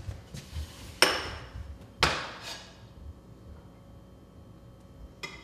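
Metal utensils clink sharply against a pan.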